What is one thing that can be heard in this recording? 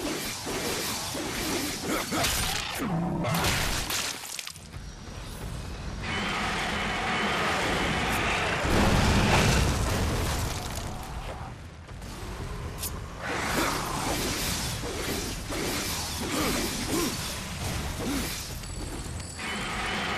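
A blade strikes creatures in combat, with fighting sound effects.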